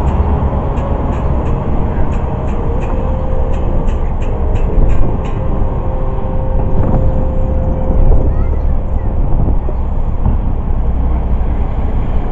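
A distorted electric guitar plays loudly.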